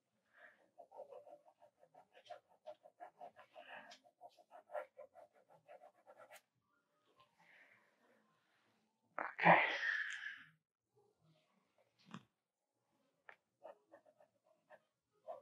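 A pencil scratches quickly across paper in short strokes.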